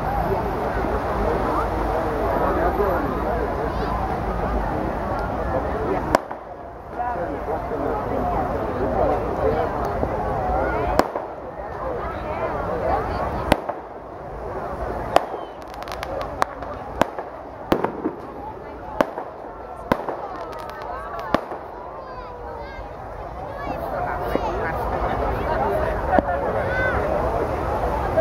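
A large crowd chatters and calls out outdoors.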